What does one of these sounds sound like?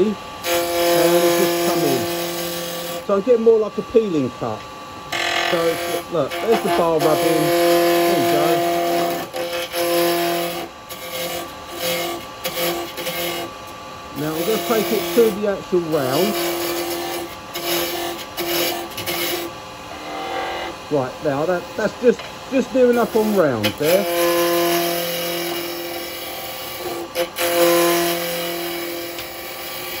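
A chisel scrapes and cuts into spinning wood with a rough, shifting whine.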